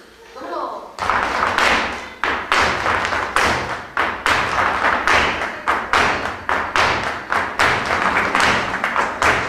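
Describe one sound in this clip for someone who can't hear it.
A band plays lively music with strong drumbeats.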